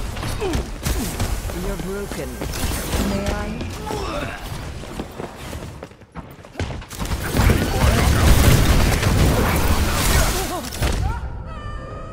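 Energy weapons crackle and blast in rapid bursts.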